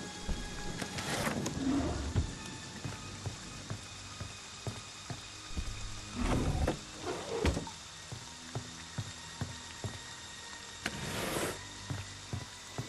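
Wooden drawers slide and rattle as they are searched.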